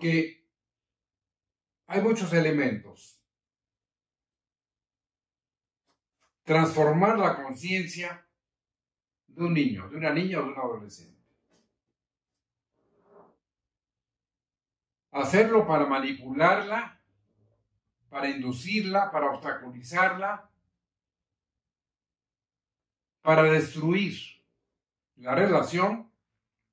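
An elderly man reads aloud calmly and close by, pausing between phrases.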